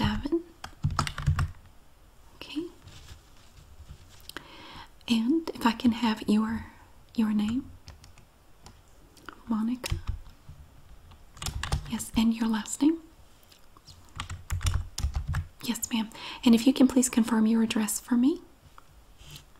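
A woman speaks calmly and close by into a headset microphone.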